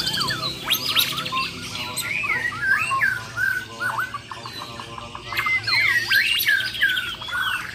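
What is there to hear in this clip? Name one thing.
Caged songbirds sing loud, varied whistling phrases close by.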